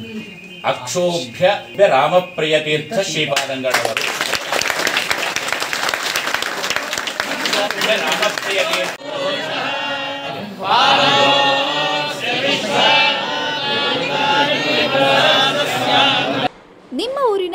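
A crowd of men chants together loudly.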